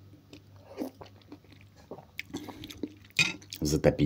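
A man chews and slurps food close up.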